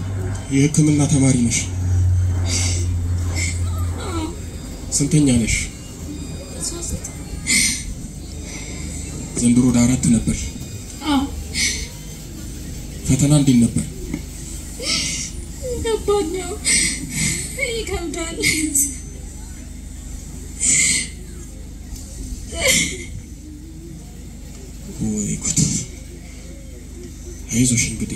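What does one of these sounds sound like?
A man speaks through a microphone and loudspeakers in an echoing room.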